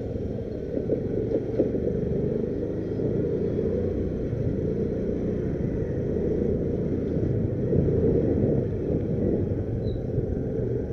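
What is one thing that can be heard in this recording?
A scooter engine hums steadily while riding down a narrow lane.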